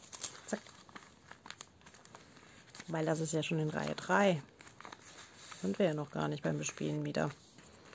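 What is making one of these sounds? A plastic pouch crinkles and rustles as hands handle it.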